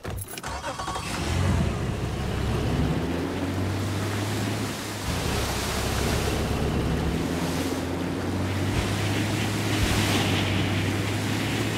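A boat's outboard motor starts and drones steadily.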